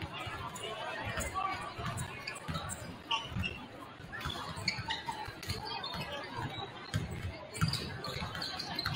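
Basketballs bounce repeatedly on a hardwood floor in a large echoing gym.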